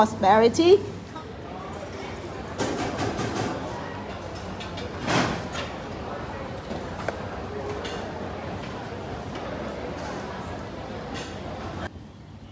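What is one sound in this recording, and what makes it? A crowd murmurs and chatters in a large, echoing hall.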